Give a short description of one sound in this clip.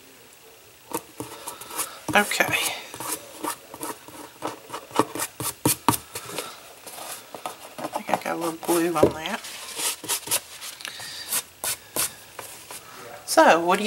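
Cardboard knocks and taps against a table.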